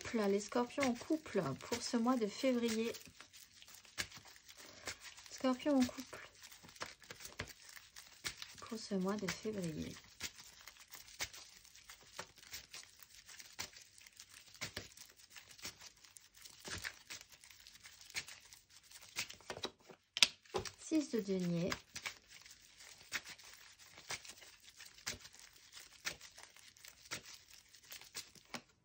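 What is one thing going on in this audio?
Playing cards are shuffled and riffled close by.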